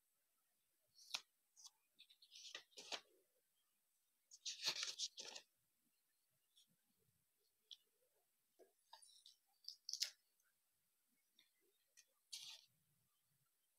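Stiff paper rustles and crinkles as hands fold it.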